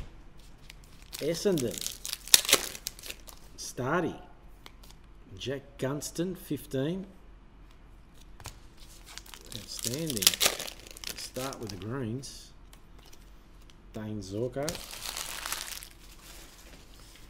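Trading cards rustle and flick as they are handled.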